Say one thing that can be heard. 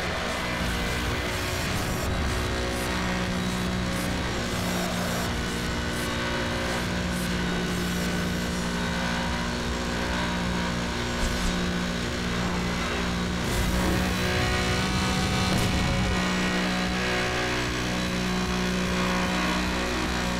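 A racing car engine roars at high speed, steady and droning.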